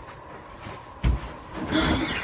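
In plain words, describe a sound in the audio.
A person drops heavily onto a bed with a soft thump.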